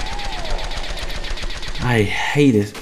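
A laser gun fires in a rapid burst.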